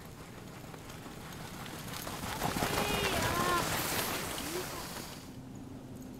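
A dog sled approaches and passes close by, its runners hissing over snow.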